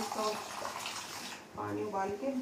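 Water runs from a tap into a small cup.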